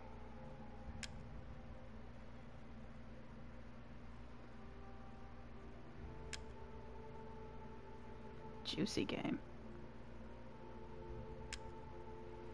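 A soft menu click ticks a few times.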